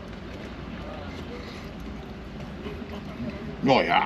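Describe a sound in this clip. A man chews food.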